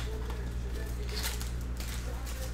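A plastic wrapper crinkles in hands.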